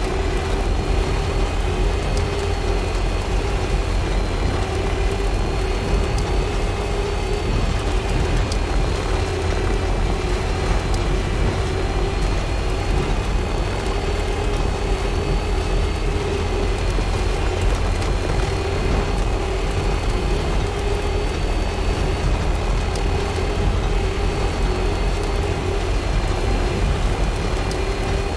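A truck engine hums steadily as it drives along a road.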